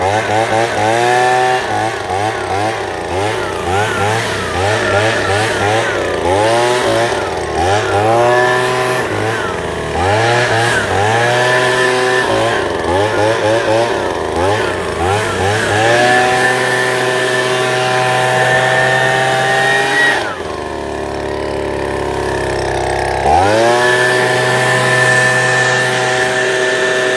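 A leaf blower engine roars close by, revving up and dropping back again and again.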